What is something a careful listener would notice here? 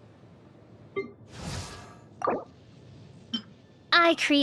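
Short game menu chimes and clicks sound now and then.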